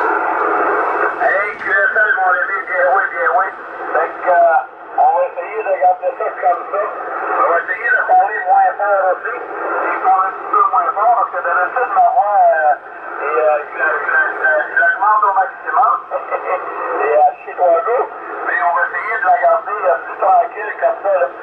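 A voice speaks through a radio receiver, thin and crackly.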